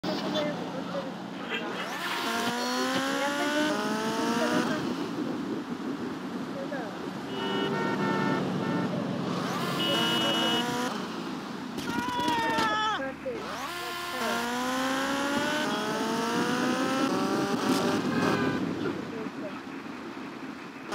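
A sport motorcycle engine revs up through the gears.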